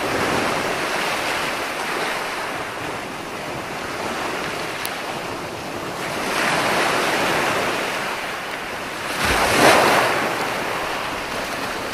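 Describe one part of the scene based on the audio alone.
Waves roll in and break on the shore with a rushing surge that swells and fades.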